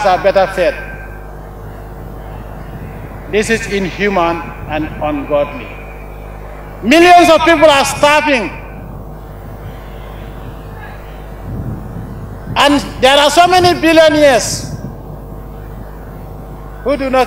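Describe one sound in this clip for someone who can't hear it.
An adult man gives a slow, forceful speech through a microphone and loudspeakers, with long pauses between phrases.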